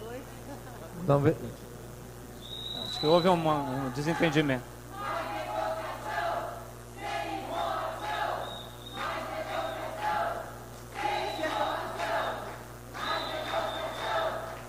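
A man speaks calmly into a microphone, heard through loudspeakers in an echoing hall.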